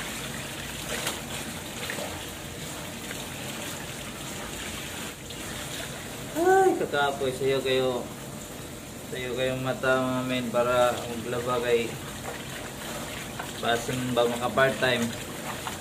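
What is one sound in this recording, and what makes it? Water splashes as clothes are rinsed by hand.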